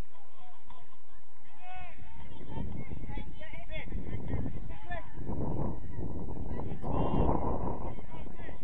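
Young men shout to each other across an open field in the distance.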